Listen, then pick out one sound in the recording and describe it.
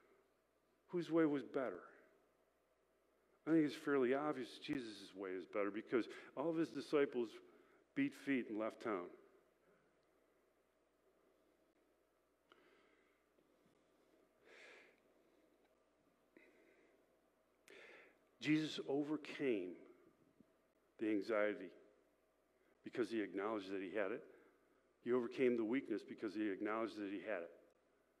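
A middle-aged man speaks calmly, with pauses, through a microphone.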